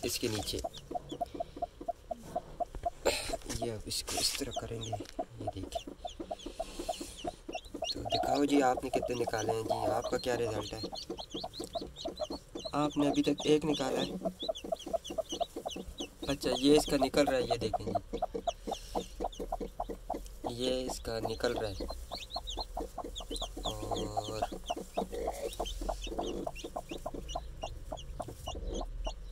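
A hen clucks and growls softly, close by.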